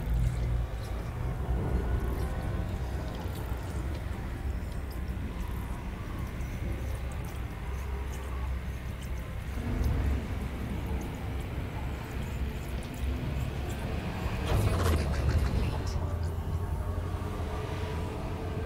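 A spaceship engine hums with a deep, steady rumble.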